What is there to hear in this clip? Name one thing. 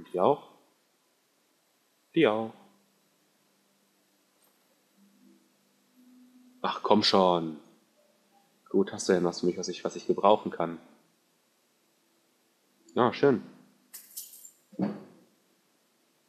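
A man speaks calmly in short phrases, with pauses between them.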